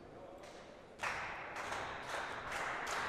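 A crowd in an indoor arena cheers and murmurs.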